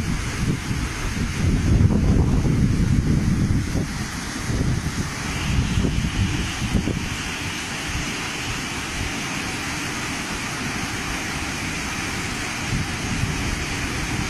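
Muddy floodwater rushes and roars in a torrent.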